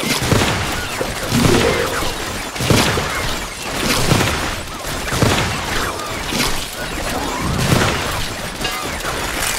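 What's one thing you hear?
Cartoon game shots pop and splat in quick succession.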